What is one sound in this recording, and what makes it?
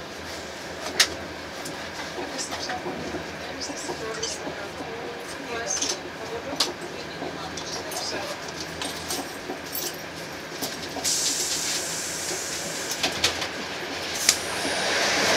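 Train wheels click and clack over rail joints.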